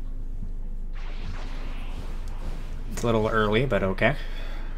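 An energy blast bursts with a rushing whoosh.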